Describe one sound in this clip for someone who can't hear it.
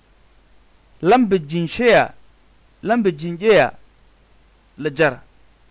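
A man speaks clearly and slowly in short phrases close to a microphone.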